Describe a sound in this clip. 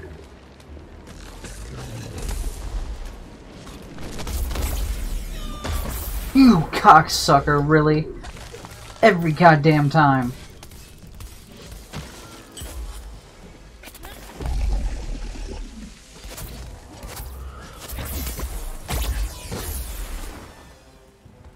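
Fiery explosions boom and rumble.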